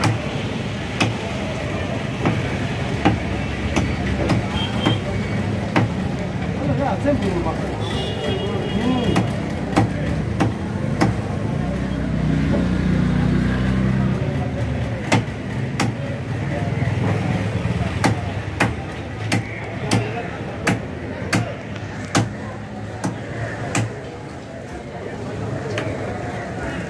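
A knife chops through fish on a wooden block with sharp knocks.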